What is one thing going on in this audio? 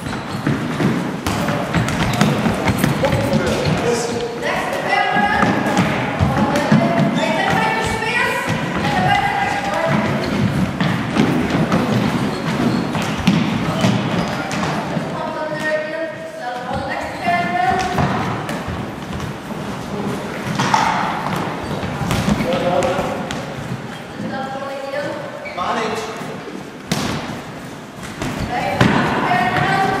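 A ball thuds against hands and the floor.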